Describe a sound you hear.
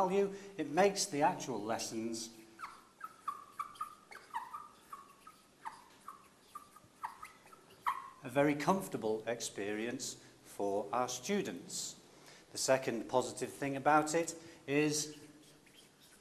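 A middle-aged man speaks calmly and clearly into a close microphone, explaining.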